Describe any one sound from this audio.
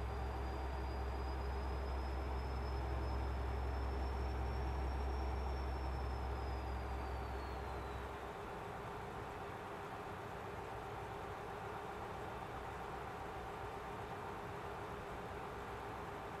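Tyres roll on a road with a steady rushing noise.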